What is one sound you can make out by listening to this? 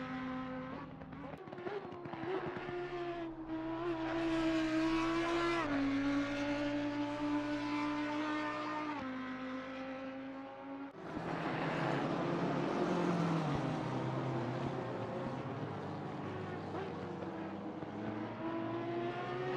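A racing car engine roars at high revs, shifting gears as it speeds along.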